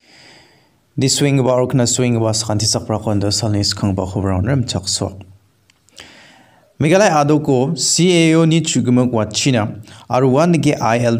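A man speaks calmly, heard through a microphone.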